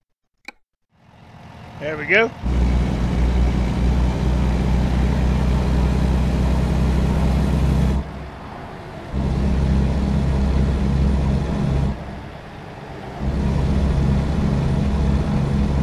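A truck engine rumbles steadily, rising and dropping as it changes gear.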